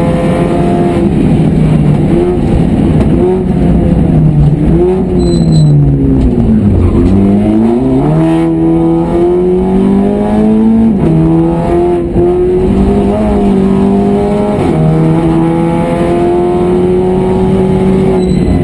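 A race car engine roars loudly inside the cabin, revving up and down with gear changes.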